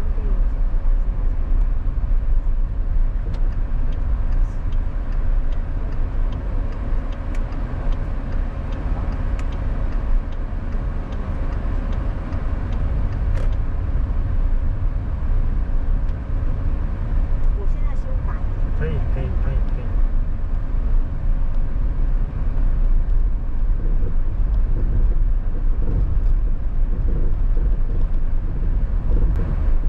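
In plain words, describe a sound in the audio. Tyres rumble low and steady on the road.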